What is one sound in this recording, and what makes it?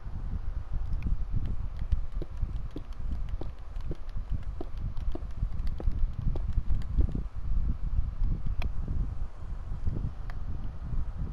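Blocks are placed one after another with soft, quick clicks.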